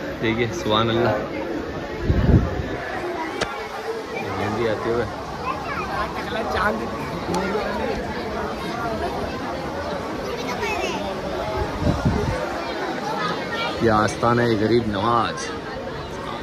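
A crowd of people chatters and murmurs around.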